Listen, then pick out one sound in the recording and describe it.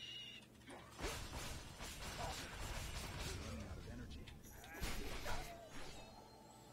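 Fighting sound effects crash and clatter.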